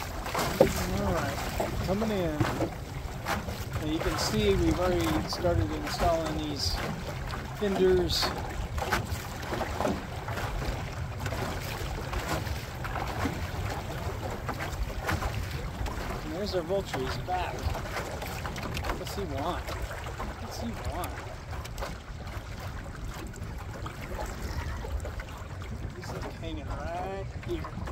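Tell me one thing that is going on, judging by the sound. Small waves lap against the hull of a boat.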